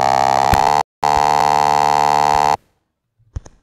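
A buzzy electronic game tone drones steadily, then cuts off.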